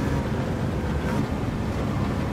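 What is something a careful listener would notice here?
A car engine drops in pitch as it shifts gear.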